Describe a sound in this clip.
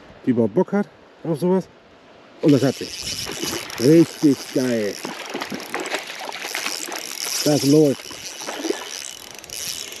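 Water splashes as a fish thrashes at the surface.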